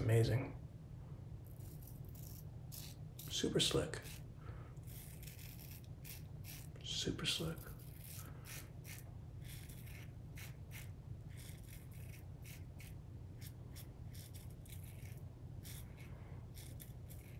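A razor scrapes across stubble in short strokes.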